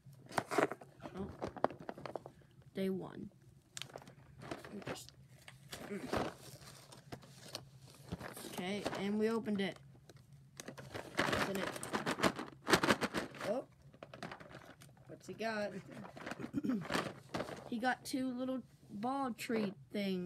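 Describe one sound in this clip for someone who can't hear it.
Cardboard rustles and taps as it is handled.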